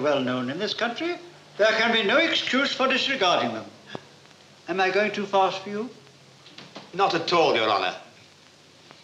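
Men speak in turn, calmly and close by.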